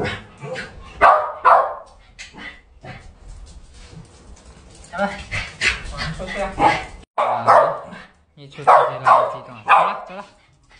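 A small dog barks excitedly, close by.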